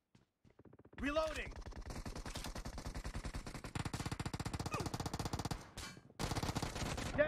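A video game's automatic rifle fires in rapid bursts.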